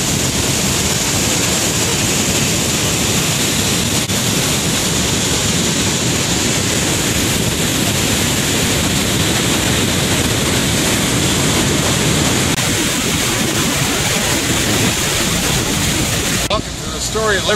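A waterfall roars loudly and steadily close by.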